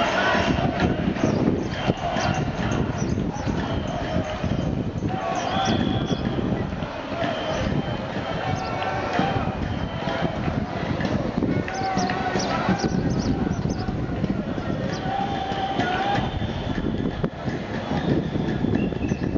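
A crowd murmurs and talks at a distance.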